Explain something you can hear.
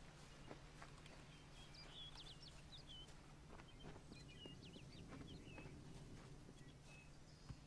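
Footsteps tread along a path.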